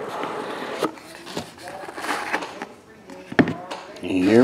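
A cardboard box taps and scrapes as hands open it.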